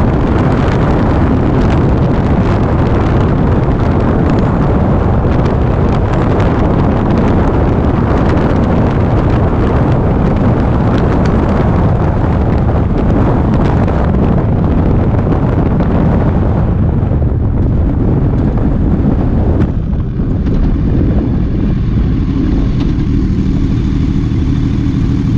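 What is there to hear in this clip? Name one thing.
A motorcycle engine drones steadily and slows to a low idle.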